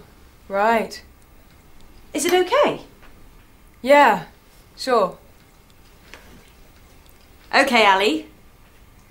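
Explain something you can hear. A woman speaks nearby in short, animated phrases.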